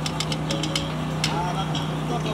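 Metal tongs clink against a griddle.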